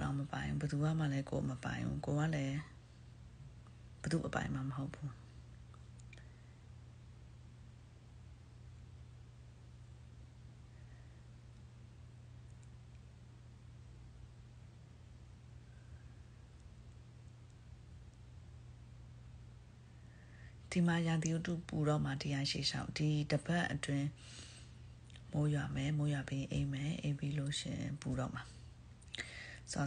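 A young woman speaks calmly, close to the microphone, with long pauses.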